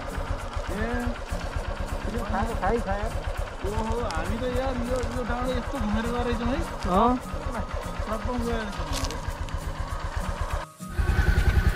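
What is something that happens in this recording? A motorcycle engine idles nearby.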